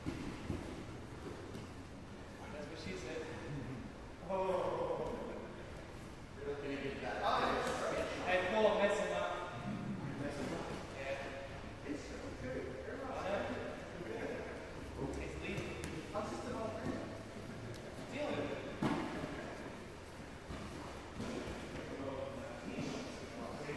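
A man talks calmly, heard from across a large echoing hall.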